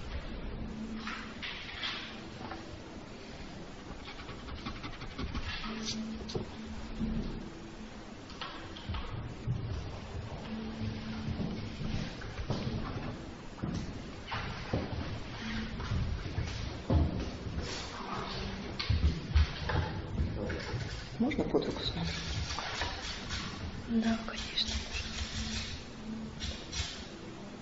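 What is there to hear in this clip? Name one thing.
A pencil scratches and scrapes on paper.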